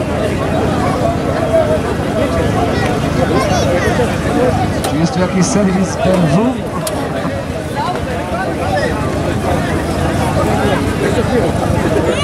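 Men talk and call out nearby.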